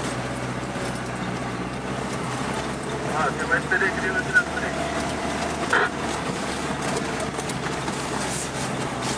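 Tyres roll and crunch over a dirt road.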